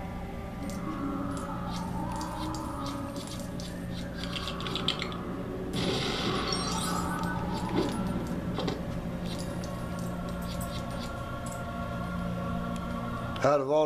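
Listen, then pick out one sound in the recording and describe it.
Small coins jingle and chime in quick bursts as they are picked up.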